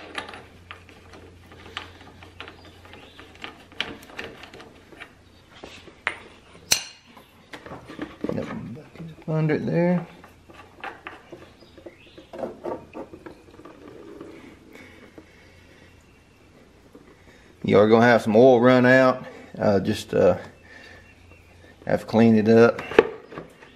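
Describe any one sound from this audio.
Metal parts click and clink as they are handled up close.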